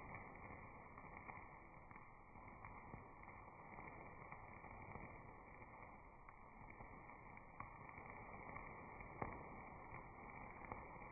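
A sparkler hisses and crackles steadily.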